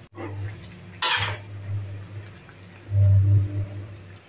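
A metal spatula stirs and scrapes in a wok.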